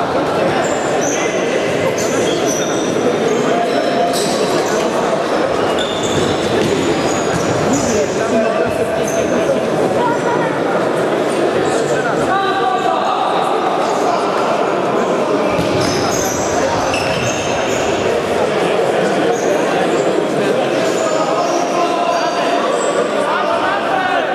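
A ball thuds as a player kicks it.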